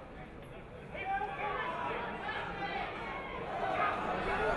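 A crowd cheers and shouts across a large outdoor ground.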